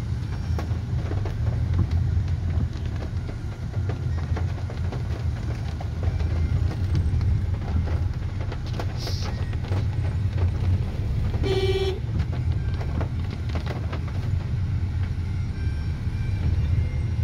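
A car engine rumbles steadily from inside the vehicle.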